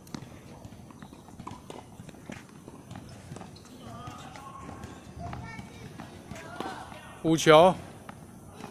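A tennis racket hits a ball with sharp pops.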